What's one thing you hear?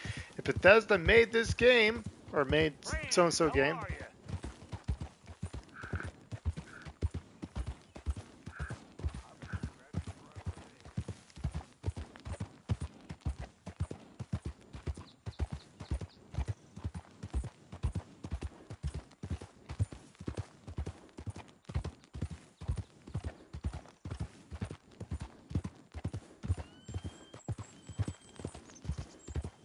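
A horse's hooves clop steadily on a dirt trail.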